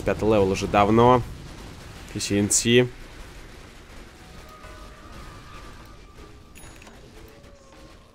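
Magic blasts and weapon clashes from a video game battle ring out.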